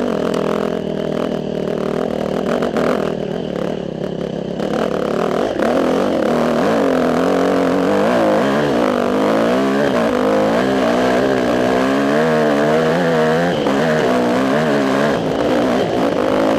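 A motorcycle engine roars and revs up and down close by.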